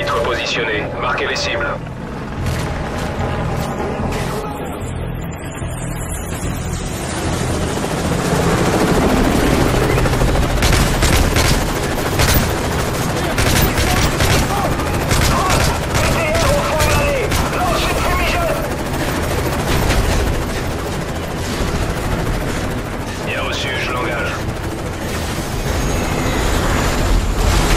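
Gunfire rattles in rapid bursts nearby.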